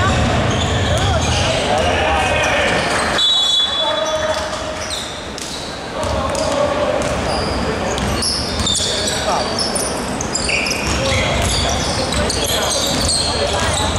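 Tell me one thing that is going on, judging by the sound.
Basketball sneakers squeak on a hardwood court in a large echoing hall.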